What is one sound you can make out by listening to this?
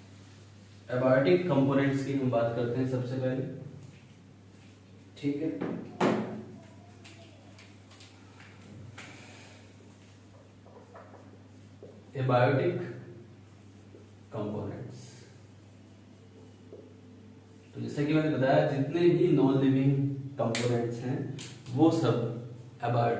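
A man speaks calmly in pauses, close by.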